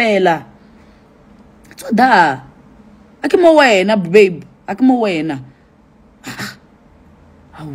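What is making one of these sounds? A young woman talks with animation close to a phone microphone, in short bursts.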